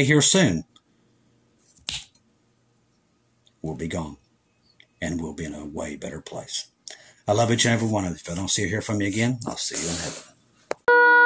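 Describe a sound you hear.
A middle-aged man speaks calmly and close to a phone microphone, with pauses.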